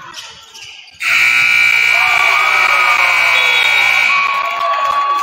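A loud buzzer blares in a large echoing gym.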